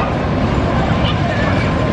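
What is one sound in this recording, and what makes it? A roller coaster train rumbles along its track.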